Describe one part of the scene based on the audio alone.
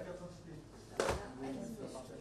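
A paper drops into a plastic box with a soft thud.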